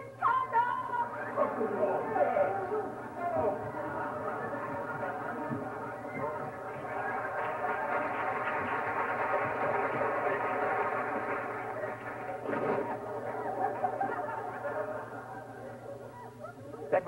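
A woman sings loudly and steadily, ringing through a large hall.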